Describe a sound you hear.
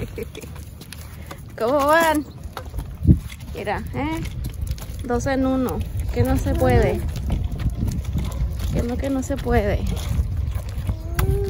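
Plastic tricycle wheels roll and rattle over concrete.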